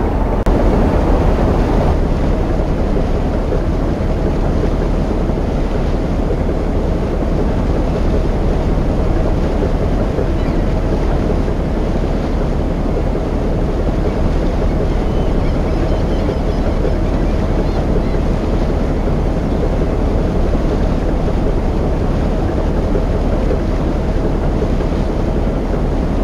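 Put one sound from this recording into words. A boat's diesel engine rumbles steadily.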